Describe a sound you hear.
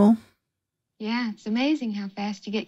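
A woman speaks cheerfully.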